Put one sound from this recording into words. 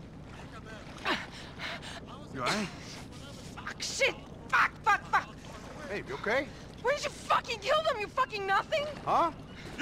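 A young woman speaks loudly, sounding distressed.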